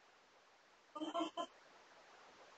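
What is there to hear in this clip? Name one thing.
A parrot squawks sharply close by.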